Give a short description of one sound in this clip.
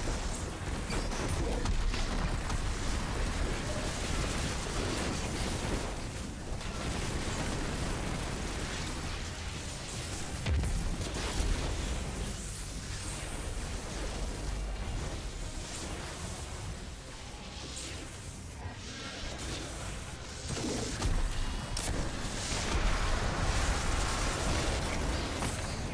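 Energy blasts and explosions crackle in a game.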